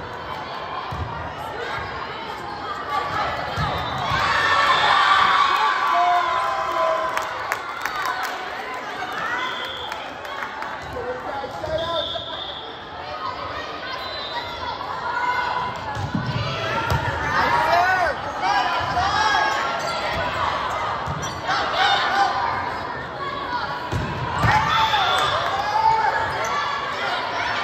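Young women call out and shout to each other in a large echoing gym.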